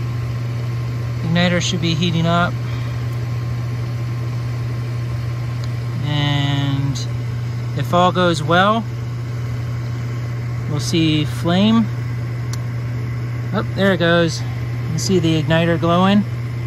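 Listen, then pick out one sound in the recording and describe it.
A furnace motor hums steadily.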